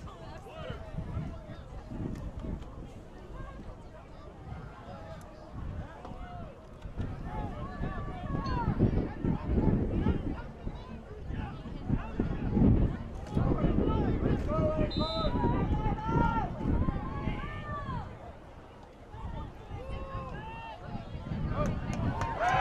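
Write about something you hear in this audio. Several young men shout and call out to each other outdoors.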